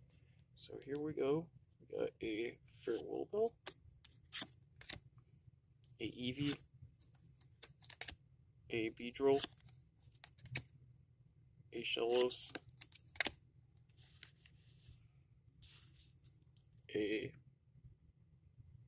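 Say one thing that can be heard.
Playing cards slap and slide onto a soft tabletop.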